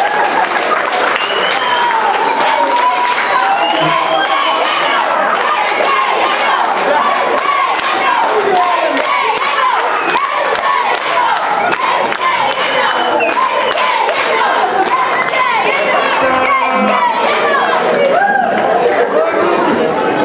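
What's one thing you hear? A large crowd of men and women chatters, laughs and shouts loudly all around.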